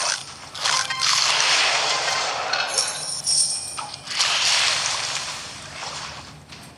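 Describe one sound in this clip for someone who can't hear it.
A huge fish splashes and crashes through water.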